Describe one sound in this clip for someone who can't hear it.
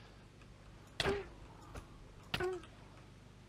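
A sword strikes a creature with sharp hits.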